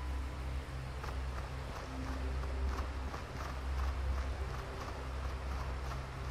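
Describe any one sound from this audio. Footsteps patter on stone.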